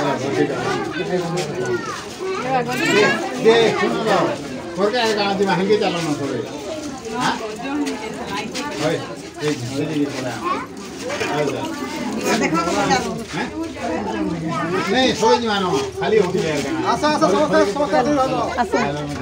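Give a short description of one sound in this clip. A crowd of women chatter and talk over one another close by.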